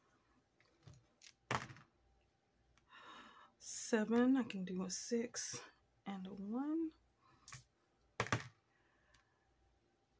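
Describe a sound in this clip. Dice tumble and click across a tabletop.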